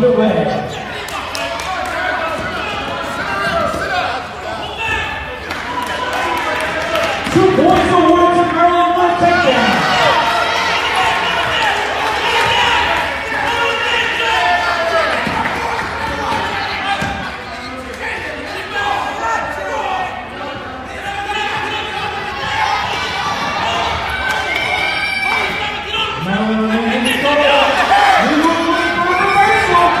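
A crowd of spectators shouts and cheers loudly in an echoing gym.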